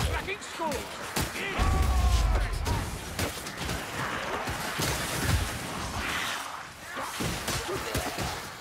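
Blades slash and thud into flesh in quick, repeated blows.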